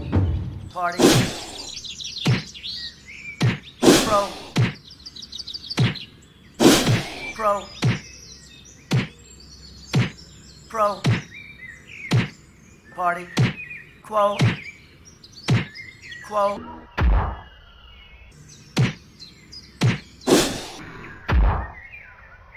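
Sharp biting blows land again and again, each with a short squelch.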